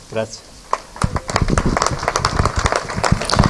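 A small audience applauds with loud clapping.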